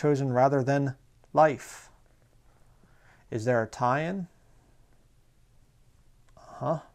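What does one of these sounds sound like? A man speaks calmly and closely, reading out in short phrases.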